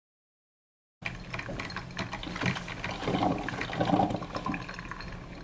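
A coffee maker gurgles and crackles as it brews.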